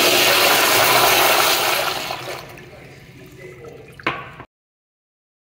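A toilet flushes with a loud rush of water that slowly fades.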